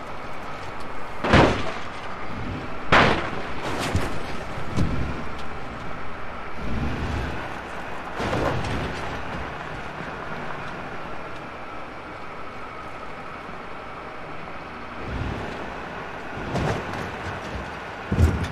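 Tyres crunch and bump over a rough dirt track.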